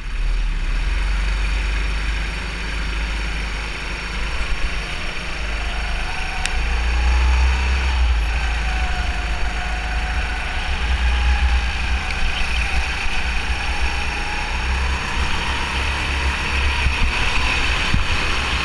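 Wind rumbles against the kart.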